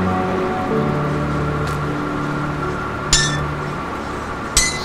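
Soft game music plays with low sustained tones.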